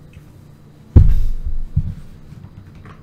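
A microphone thumps as a man bumps it.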